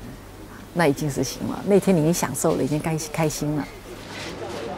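A middle-aged woman speaks calmly close by.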